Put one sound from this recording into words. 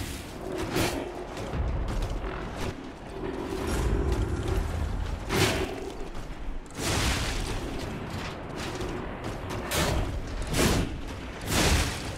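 Metal weapons clang and slash in a fight.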